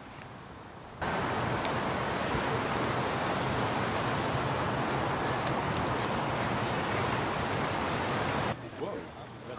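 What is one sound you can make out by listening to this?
Wind buffets loudly across the microphone outdoors.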